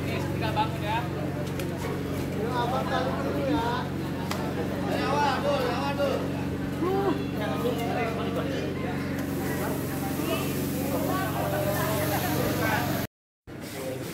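Several men talk with each other nearby outdoors.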